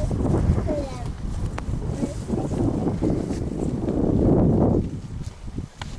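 Wind gusts roar against the microphone outdoors.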